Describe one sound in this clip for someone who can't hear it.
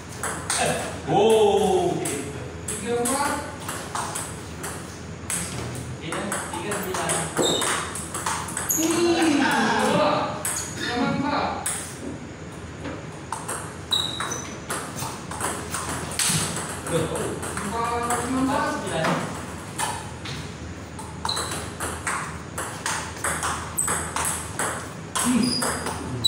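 A ping-pong ball clicks back and forth between paddles and a table.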